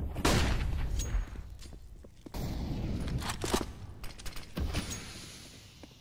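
Smoke hisses loudly from a grenade in a game.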